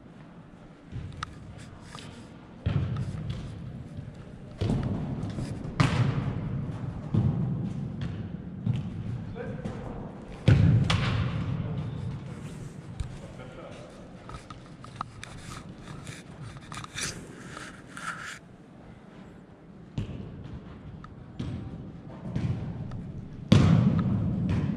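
A football is kicked with dull thuds in a large echoing hall.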